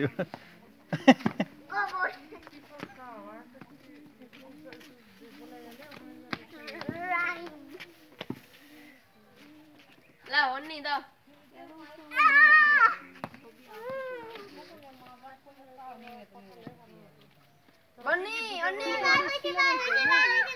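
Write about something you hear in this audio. Young children shout and chatter close by outdoors.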